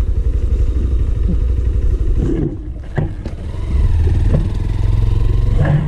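A second motorcycle rides past close by.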